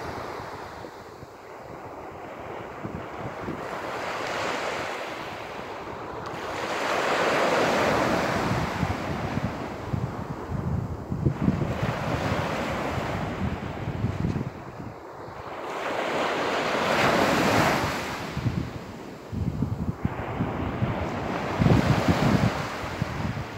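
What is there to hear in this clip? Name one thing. Waves break and wash up on a beach, surging and fading in slow swells.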